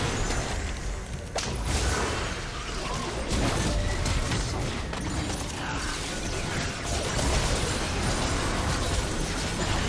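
Magic spells burst and crackle in a fast fight.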